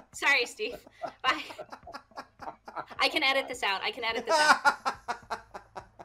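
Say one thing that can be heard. A young woman laughs over an online call.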